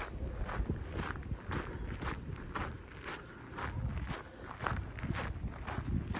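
Footsteps crunch on gravel.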